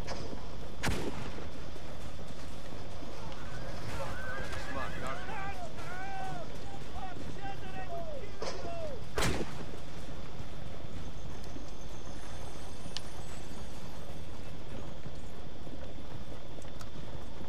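A horse-drawn cart rumbles steadily along a dirt track.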